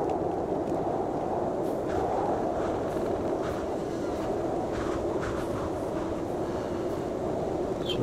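Wind blows steadily in a storm.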